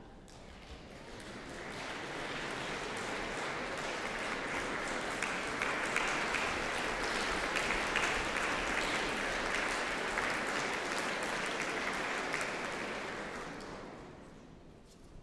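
An audience applauds warmly in a large echoing hall.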